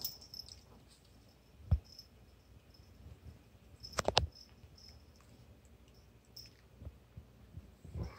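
A cat bats a small toy that rattles on the floor.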